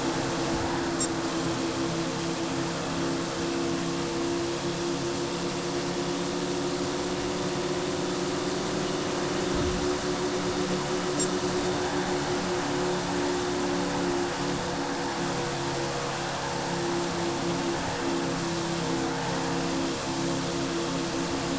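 A V8 stock car engine roars at full throttle.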